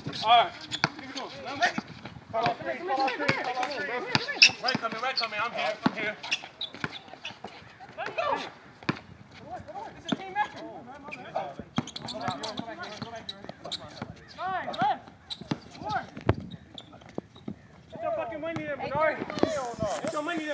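Young men talk and call out to each other outdoors.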